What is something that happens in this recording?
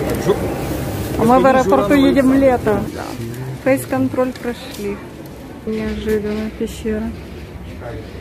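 A woman talks close to the microphone.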